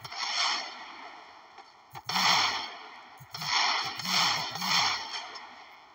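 Explosions boom and roar in repeated bursts.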